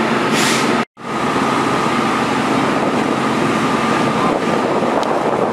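A fire hose sprays a powerful jet of water.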